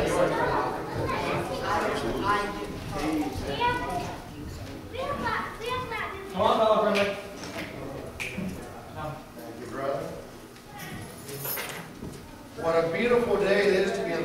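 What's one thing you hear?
A man speaks to an audience through a microphone in an echoing hall.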